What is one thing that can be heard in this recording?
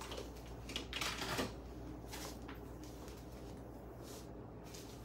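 Hair rustles softly as hands comb through it.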